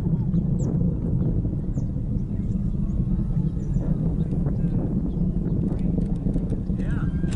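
A jet plane rumbles steadily far overhead.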